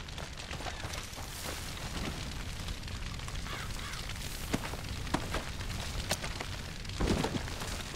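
Tall dry grass rustles and swishes as someone pushes through it.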